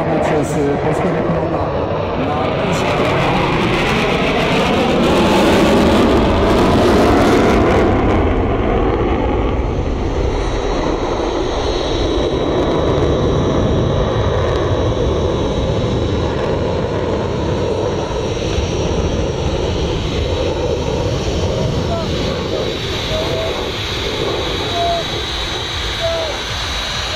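A jet engine roars loudly overhead, swelling and fading as the aircraft banks through the sky.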